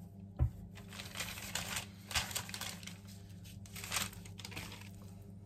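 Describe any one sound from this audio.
A paper packet rustles and crinkles.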